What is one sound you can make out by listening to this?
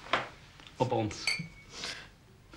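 Wine glasses clink together.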